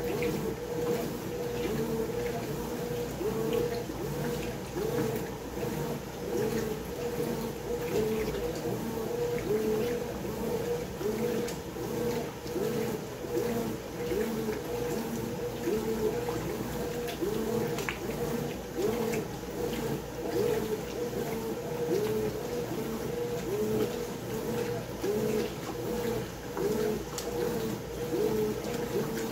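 Water sloshes around laundry in a washing machine drum.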